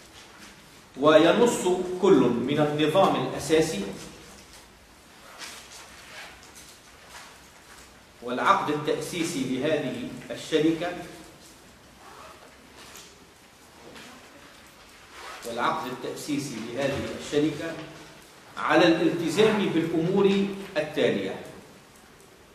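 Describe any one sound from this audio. A man speaks calmly in short bursts with long pauses, close by.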